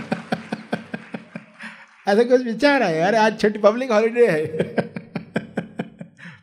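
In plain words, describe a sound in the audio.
A middle-aged man laughs heartily into a microphone.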